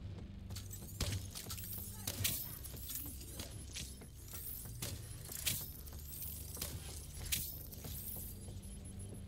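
Gunshots crack in short, sharp bursts.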